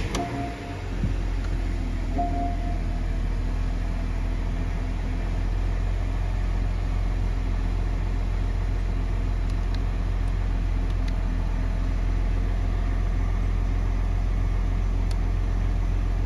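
An SUV's engine idles after a cold start.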